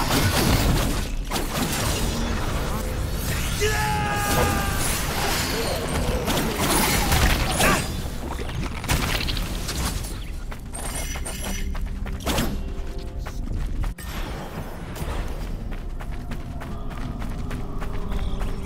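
Blades slash and clash with sharp metallic hits.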